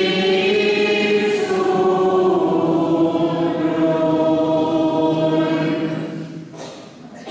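An elderly man chants slowly through a microphone.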